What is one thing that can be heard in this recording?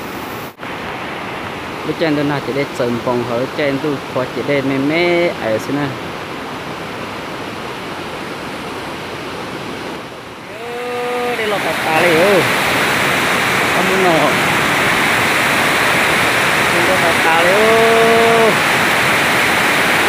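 A waterfall rushes and splashes steadily, growing louder up close.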